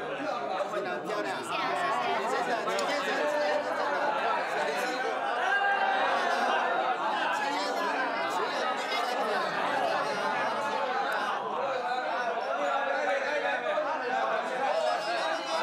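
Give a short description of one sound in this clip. A crowd of men and women chatter and laugh together nearby.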